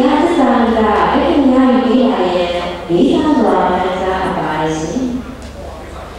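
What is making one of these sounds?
A young woman reads aloud into a microphone, heard through a loudspeaker.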